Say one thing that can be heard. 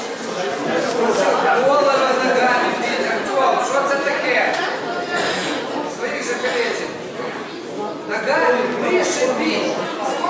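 A crowd of people chatters and shouts in a large echoing hall.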